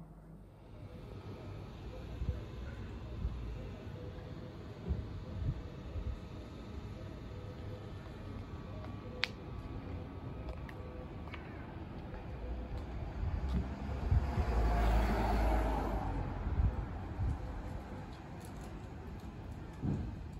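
Footsteps tread on a paved street outdoors.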